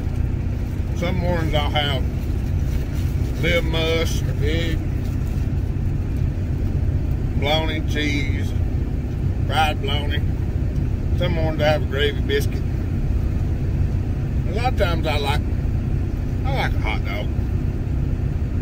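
A man speaks close by in short, calm phrases.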